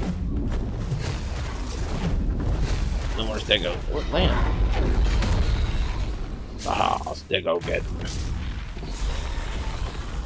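A large creature's wings beat heavily as it flies.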